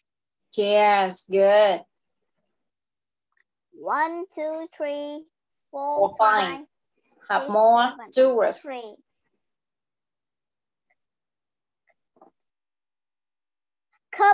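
A child speaks with animation over an online call.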